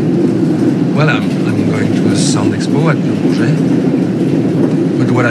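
A young man speaks quietly close by.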